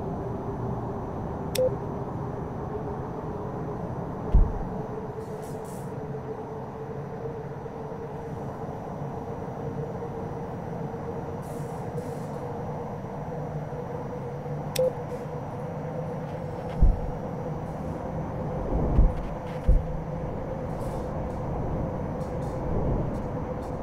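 A jet engine drones steadily with a low rumble and a humming whine.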